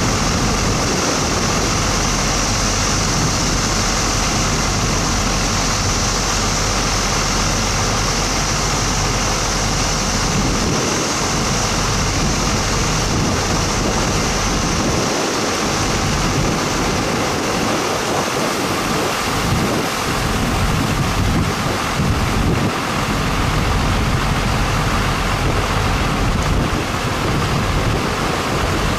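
A fire truck engine idles steadily nearby.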